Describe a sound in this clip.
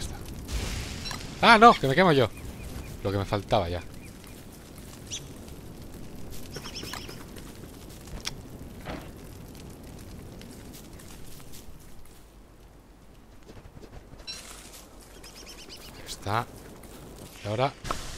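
A fire crackles and burns.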